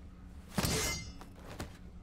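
A blade swishes and strikes.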